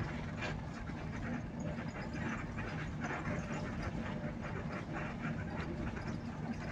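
A vehicle's engine drones, heard from inside the vehicle as it drives.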